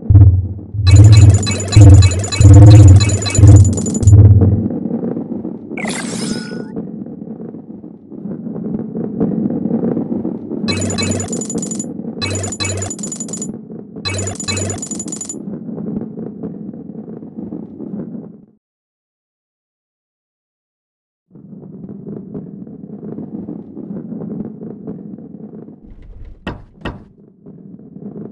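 A ball rolls and rumbles steadily along a wooden track.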